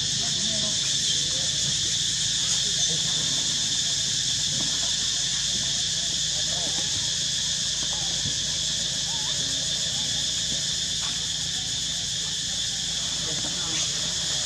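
Monkeys squeak and chatter close by.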